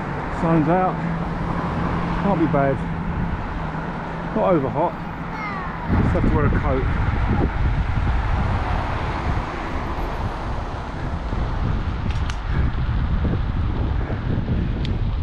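Wind rushes and buffets loudly past the rider.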